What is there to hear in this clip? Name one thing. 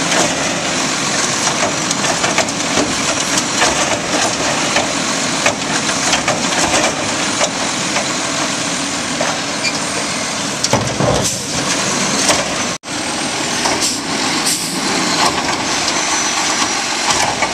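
Trash tumbles out of a bin into a truck.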